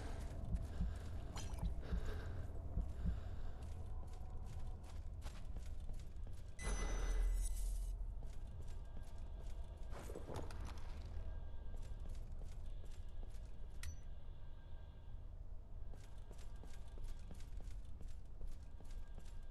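Heavy armoured footsteps clatter on stone.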